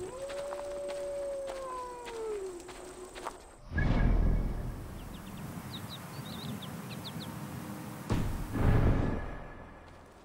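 A torch flame crackles.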